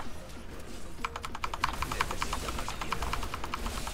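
Fast game battle effects crackle and clatter.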